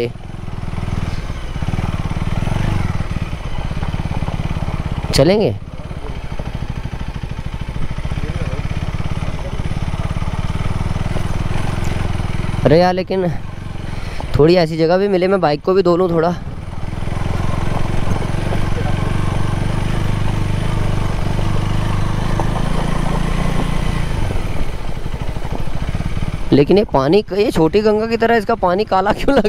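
A motorcycle engine rumbles steadily, rising and falling with the throttle.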